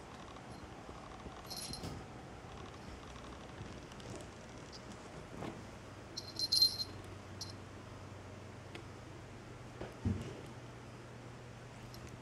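A small bell on a toy mouse jingles as a cat paws at it.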